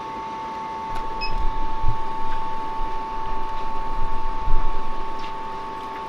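A cutting machine whirs and buzzes as it cuts.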